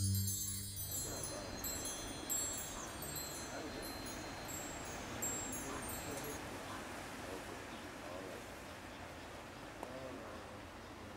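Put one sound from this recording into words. Calm sea water laps gently against rocks.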